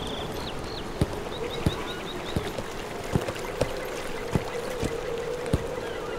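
Horse hooves clop steadily on stone paving.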